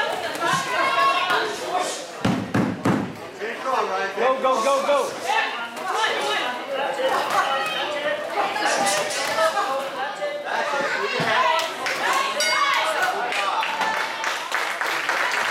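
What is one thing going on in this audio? Spectators shout and talk.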